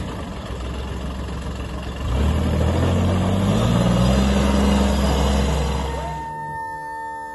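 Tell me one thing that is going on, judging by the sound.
A small utility vehicle's engine revs up as the vehicle drives off.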